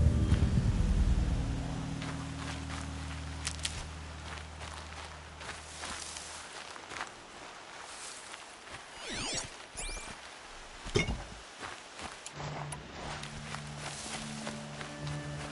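Footsteps crunch on snow and dry grass.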